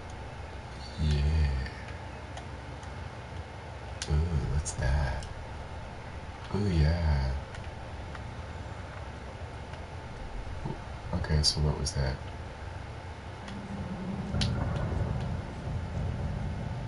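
A young man talks with animation through a close microphone.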